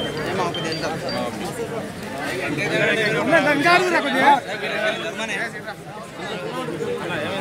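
A crowd of men talks and calls out outdoors, close by.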